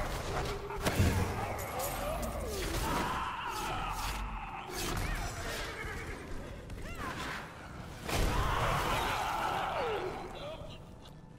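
Game creatures shriek and groan as they are struck.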